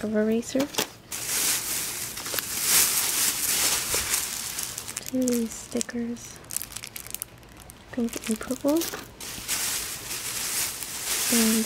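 A plastic bag rustles and crinkles up close.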